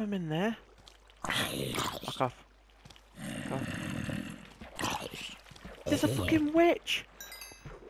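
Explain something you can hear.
A zombie groans in a game.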